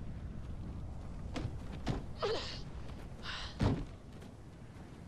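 A low rumble of burning wreckage fills the air.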